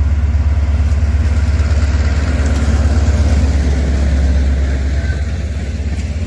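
Train wheels clatter and squeal on the rails as carriages roll past.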